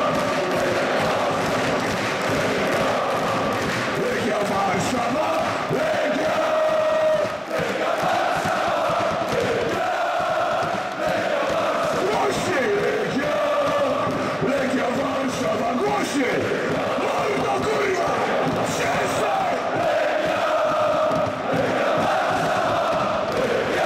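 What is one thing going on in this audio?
A large crowd of men sings a loud chant together, echoing through a big open stadium.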